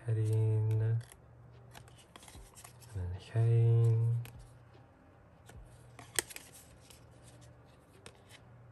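Glossy cards slide and rustle against each other in someone's hands.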